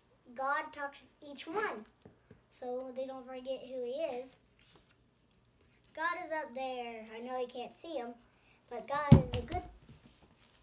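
A young boy speaks close by, reading out loud with animation.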